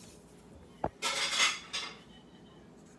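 A sheet of paper rustles as it is moved.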